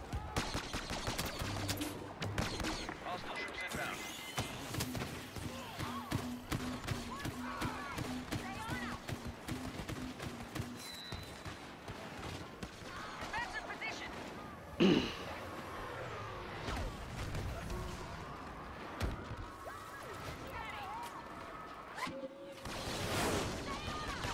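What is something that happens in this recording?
Blaster fire crackles in rapid bursts.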